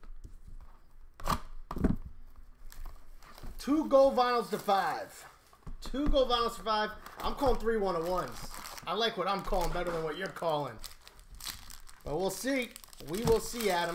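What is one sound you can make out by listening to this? Cardboard and foil wrappers rustle and crinkle as packs are handled.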